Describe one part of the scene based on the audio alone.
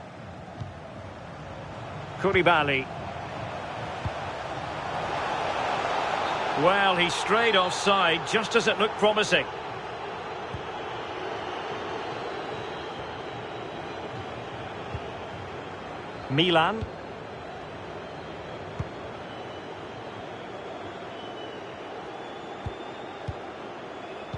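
A large stadium crowd roars steadily, swelling and then easing off.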